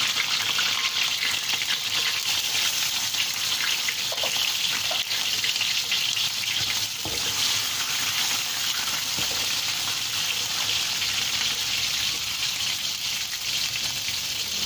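Shrimp sizzle and crackle steadily in hot oil.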